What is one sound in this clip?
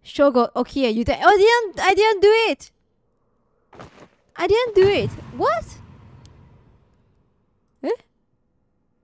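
A young woman speaks with animation into a microphone, her voice rising and falling in pitch.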